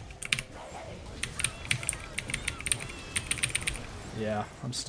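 Game weapons clash and spells burst in rapid clicks and zaps.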